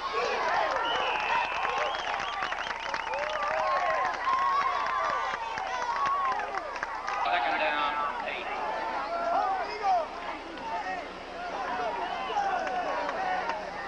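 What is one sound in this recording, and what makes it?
A large crowd of young people cheers and shouts outdoors.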